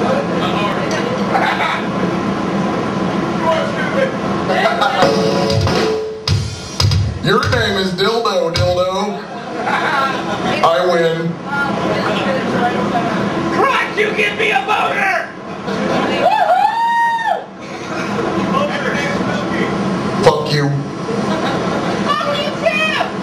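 A man talks into a microphone through loud speakers in an echoing hall.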